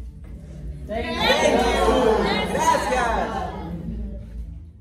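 A group of people cheer and call out together in a room.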